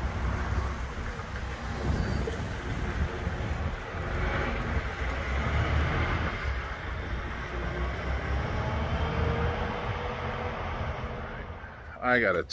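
A truck engine rumbles as a truck drives slowly away.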